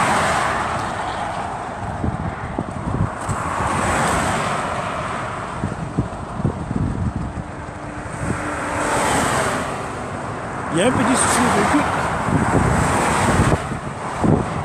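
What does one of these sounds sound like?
A car drives along a highway with a steady rumble.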